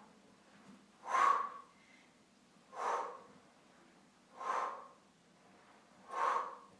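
A young woman breathes out sharply at an even, slow pace.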